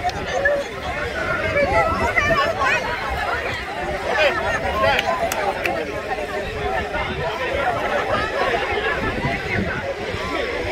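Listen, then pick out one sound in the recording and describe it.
A large crowd of men and women chatter loudly outdoors.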